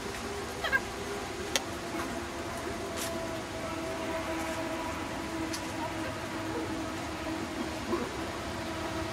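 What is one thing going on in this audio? A woman calls out short commands to a dog.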